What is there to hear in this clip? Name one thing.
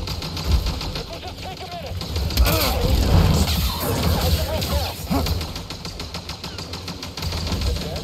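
A glowing energy blade hums and swooshes through the air.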